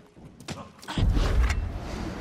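A body lands heavily with a thud.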